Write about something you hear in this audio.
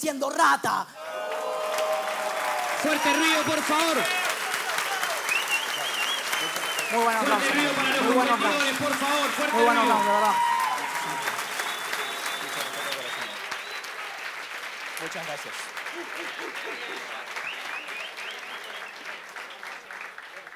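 A large crowd cheers and shouts loudly in a big echoing hall.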